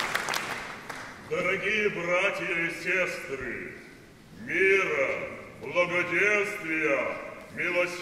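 A man sings in a deep, full voice in an echoing hall.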